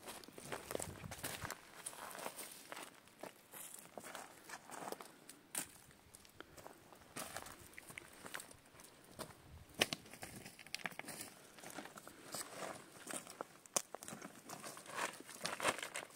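Footsteps crunch on dry stony ground.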